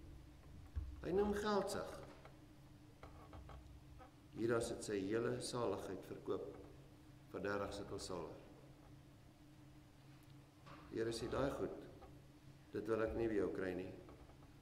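An elderly man speaks calmly and slowly into a microphone, with pauses between phrases.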